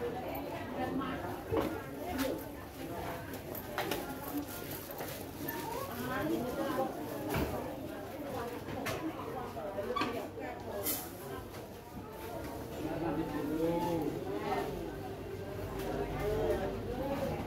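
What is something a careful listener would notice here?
A kitten mews softly and repeatedly close by.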